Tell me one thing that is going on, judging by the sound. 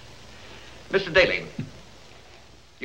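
An elderly man speaks briefly.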